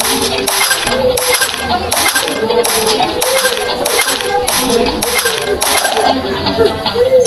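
Bright chiming game effects ring out as rolling marbles are matched and burst.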